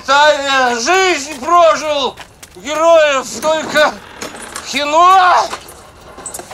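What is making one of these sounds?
A man wails loudly in a long, wavering voice.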